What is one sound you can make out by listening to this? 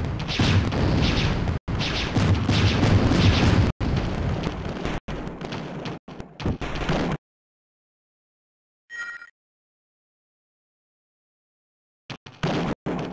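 A large mechanical walker stomps heavily.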